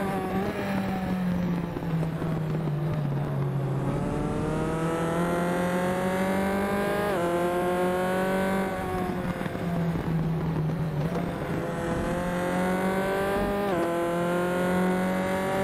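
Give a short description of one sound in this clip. A racing car engine revs high, rising in pitch and dropping sharply at each gear change.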